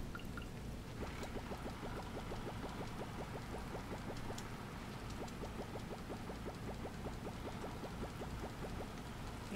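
A rapid mechanical ticking plays as items are processed in a game.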